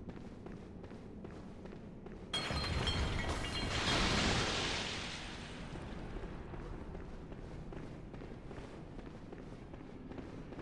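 Footsteps clack on a stone floor.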